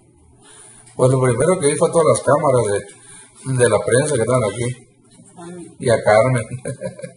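A man talks nearby, calmly and clearly.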